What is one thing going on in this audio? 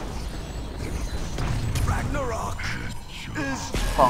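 Magic blasts explode with a deep boom.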